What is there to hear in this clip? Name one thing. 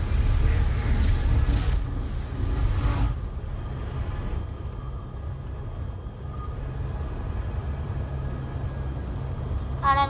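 A helicopter engine rumbles steadily.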